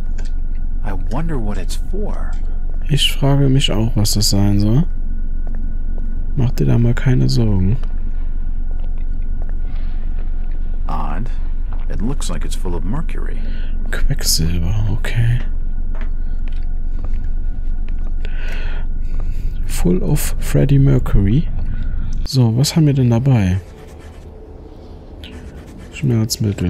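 A young man talks calmly and close into a microphone.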